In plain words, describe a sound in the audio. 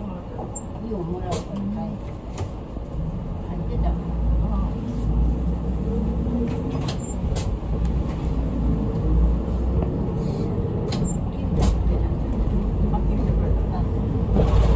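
A bus engine hums and rises as the bus pulls away.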